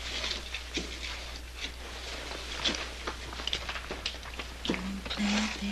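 A man scrapes and knocks against rock.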